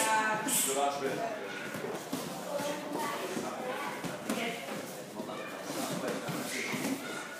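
Boxing gloves thud against pads in quick punches.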